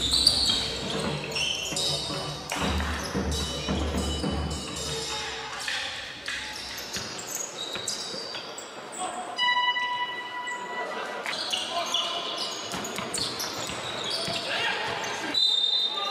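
Sounds echo around a large indoor hall.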